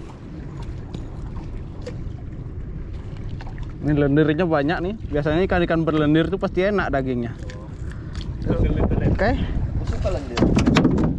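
Waves lap against a small boat's hull.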